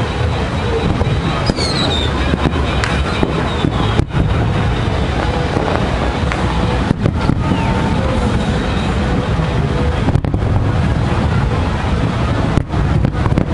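Fireworks boom and crackle in the distance.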